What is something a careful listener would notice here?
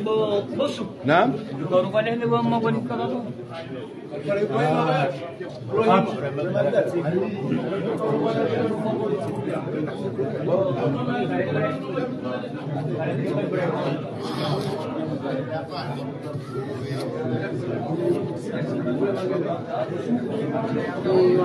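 A crowd of men chatter all around, close by.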